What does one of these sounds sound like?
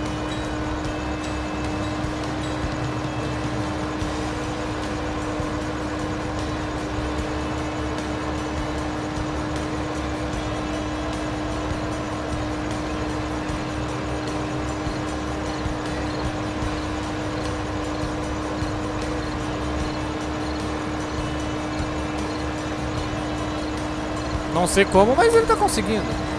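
A tractor engine drones steadily at low speed.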